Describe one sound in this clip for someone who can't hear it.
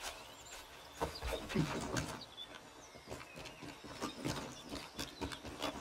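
Hands and boots scrape and thump on tree bark while climbing.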